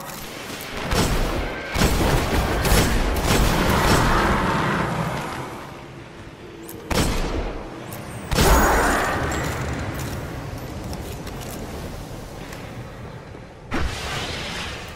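A gun fires loud, booming shots.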